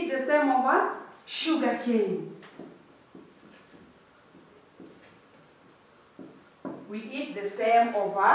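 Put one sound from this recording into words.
A woman speaks clearly and calmly, close by.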